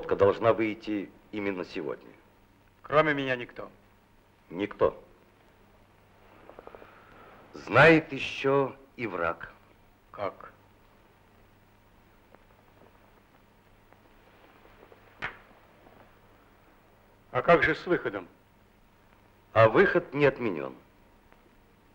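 A middle-aged man speaks calmly and earnestly, close by.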